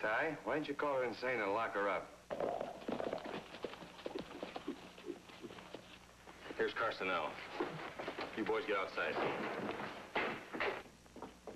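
A man speaks with animation.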